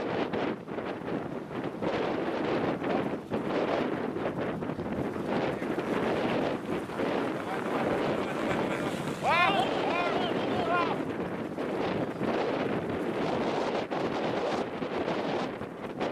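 Several men talk nearby outdoors in gusty wind.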